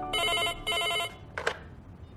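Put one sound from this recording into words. A phone rings.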